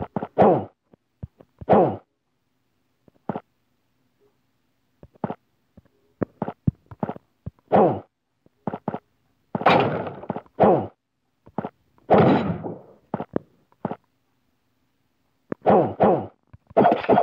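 Sword slashes whoosh and clang in quick bursts.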